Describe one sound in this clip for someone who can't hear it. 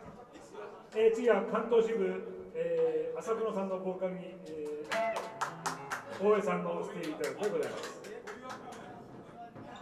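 A man talks loudly into a microphone over a loudspeaker.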